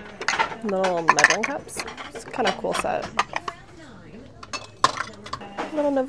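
Ceramic dishes clink together.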